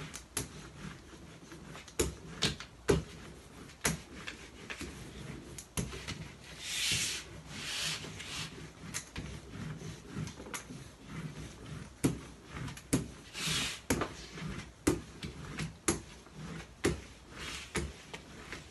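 A roller knocks sharply on a table.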